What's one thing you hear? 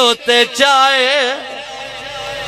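A man chants loudly into a microphone over a loudspeaker, with echo.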